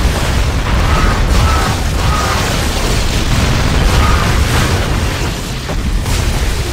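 Energy blasts zap and whoosh repeatedly.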